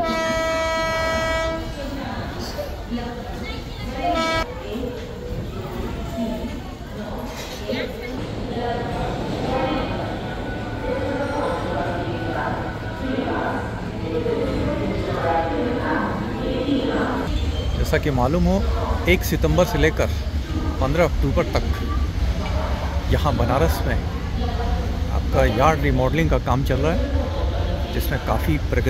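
A train rumbles steadily along the tracks.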